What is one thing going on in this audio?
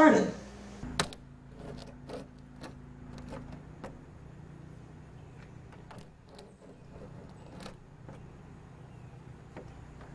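A small tool scrapes and clicks against a window frame.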